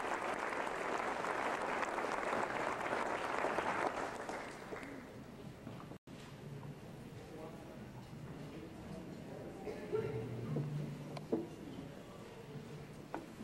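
A school band plays in a large echoing hall.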